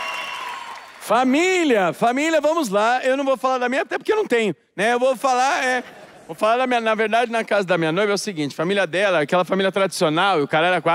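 A man talks with animation into a microphone, heard through loudspeakers.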